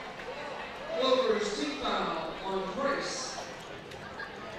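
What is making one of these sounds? A man shouts loudly from the sideline.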